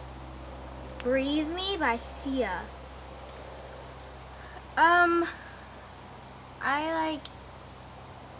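A teenage girl speaks close by, in short bursts.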